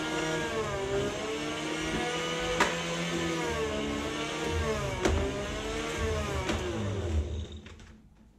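An electric meat slicer whirs with a steady hum.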